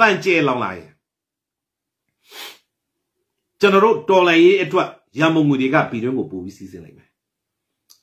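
A middle-aged man speaks with animation close to a microphone, in short bursts with pauses.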